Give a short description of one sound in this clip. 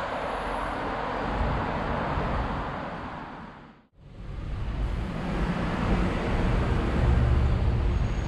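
City traffic hums along a street outdoors.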